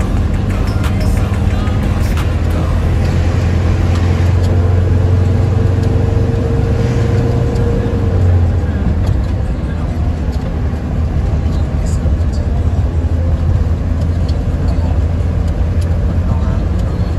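A car engine hums steadily, with tyres rumbling on the road.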